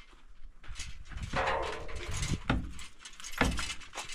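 A hammer knocks against concrete blocks.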